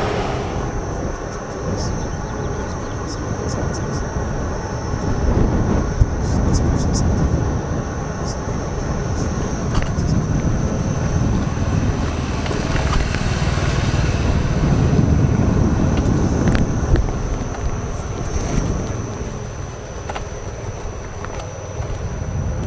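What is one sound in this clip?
A small wheel hums and rolls over pavement.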